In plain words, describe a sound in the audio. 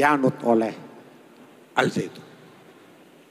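A middle-aged man speaks forcefully into a microphone, heard through loudspeakers in a large echoing hall.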